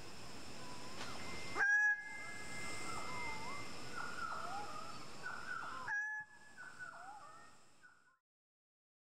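A bird calls with loud, repeated whistling and squawking notes.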